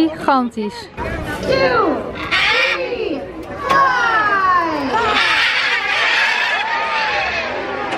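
Birds chirp and squawk loudly nearby.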